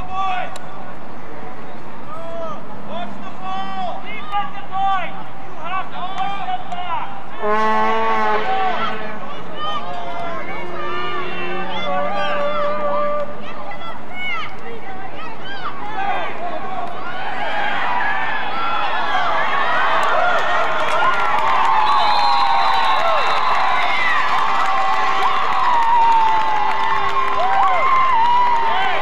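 Children shout and cheer excitedly, with the cheering growing louder.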